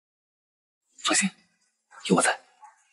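A young man speaks softly nearby.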